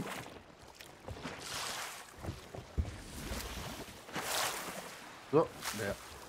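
Sea waves wash against a wooden ship.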